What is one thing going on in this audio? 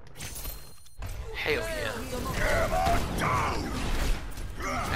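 Energy weapons fire with rapid zaps and crackles.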